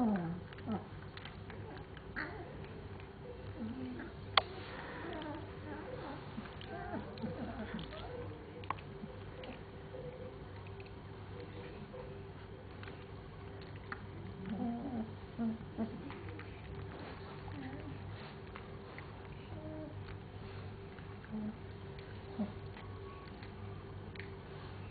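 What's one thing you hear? Puppies shuffle and rustle as they squirm together.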